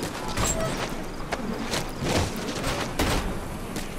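A metal door creaks open.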